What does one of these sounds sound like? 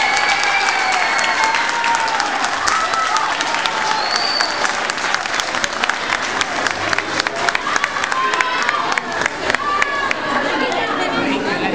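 A choir sings loudly.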